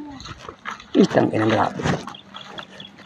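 A cow lows briefly nearby.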